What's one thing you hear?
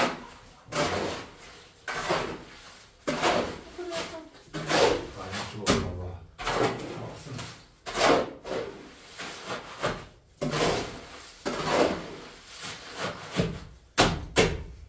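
A shovel scrapes and scoops wet concrete in rhythmic strokes.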